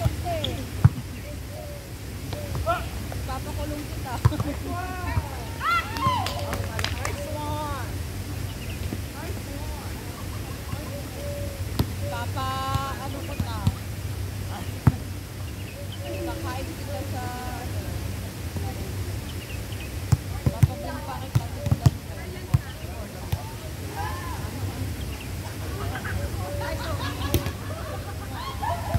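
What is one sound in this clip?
Young men call out and shout to each other outdoors.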